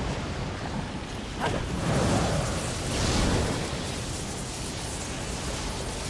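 Wings whoosh as a figure glides through the air.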